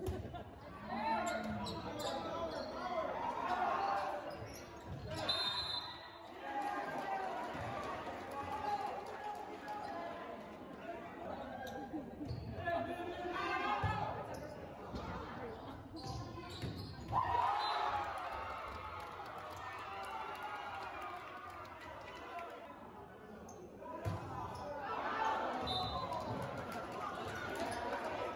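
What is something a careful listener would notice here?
A crowd of spectators cheers and chatters, echoing in a large hall.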